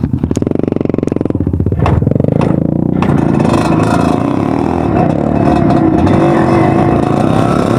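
A dirt bike engine revs and rumbles close by.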